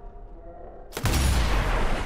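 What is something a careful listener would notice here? A rifle fires a loud, sharp shot.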